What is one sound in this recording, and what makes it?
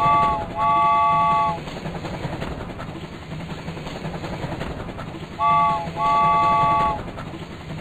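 A toy train whistle toots twice, in two short bursts.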